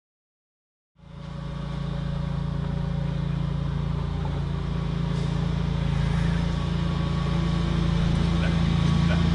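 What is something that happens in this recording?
A tractor engine idles with a steady low chug nearby.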